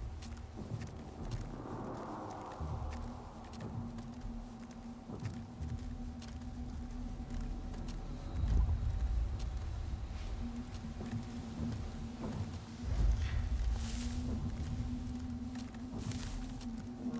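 Footsteps crunch on twigs and leaves.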